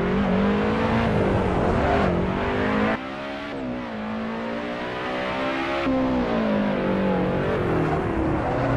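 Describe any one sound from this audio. A sports car engine roars steadily, rising and falling in pitch as it shifts gears.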